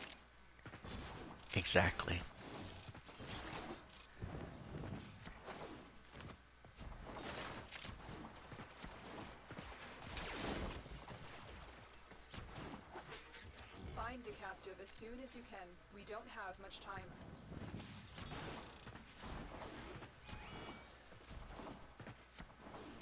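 Game sound effects whoosh and thud as a character dashes along.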